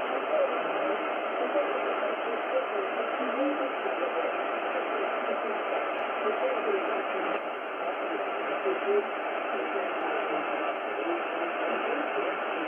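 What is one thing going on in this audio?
A shortwave radio receiver plays a faint, crackly broadcast through static.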